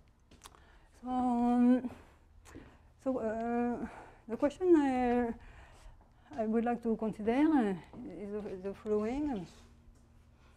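A woman speaks calmly, as if lecturing.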